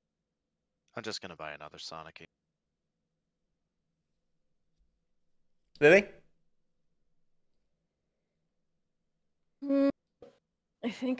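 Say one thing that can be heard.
A young man speaks briefly and calmly, close to a microphone.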